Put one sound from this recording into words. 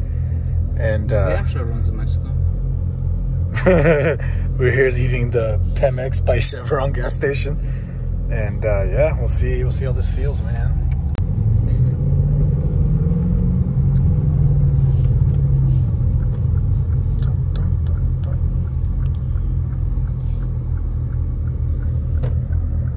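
A car engine rumbles low and steadily from inside the cabin.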